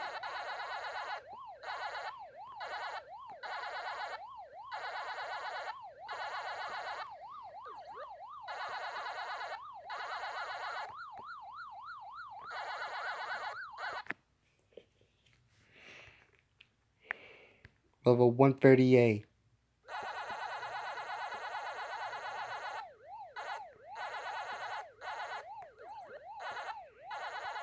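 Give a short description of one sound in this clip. An arcade game character chomps with rapid electronic beeps.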